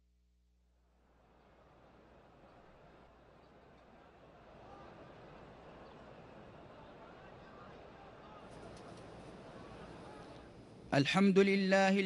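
A large crowd murmurs softly.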